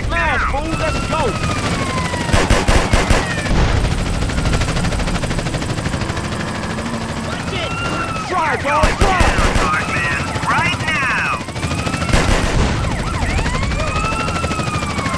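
Police sirens wail and swoop up and down.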